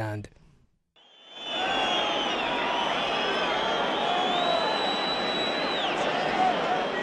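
A large crowd blows shrill whistles.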